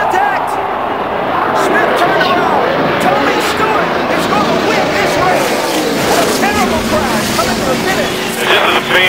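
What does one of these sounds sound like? Race cars crash and scrape into each other and a wall.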